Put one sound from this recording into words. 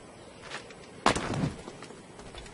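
A figure lands with a thud after a jump.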